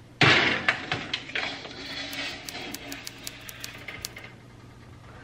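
An oven rack slides and rattles.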